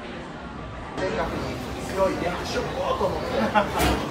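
A crowd of people chatters indoors.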